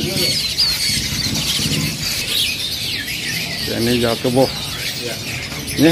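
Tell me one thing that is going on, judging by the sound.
Many caged birds chirp and whistle busily.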